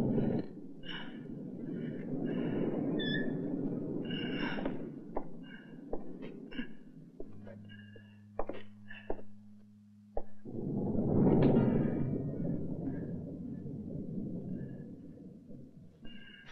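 A man breathes heavily and gasps close by.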